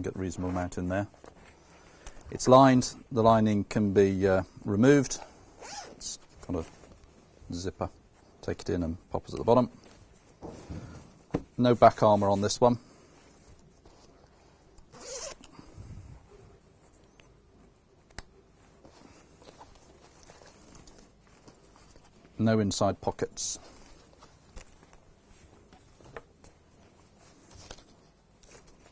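Fabric rustles as a jacket is handled.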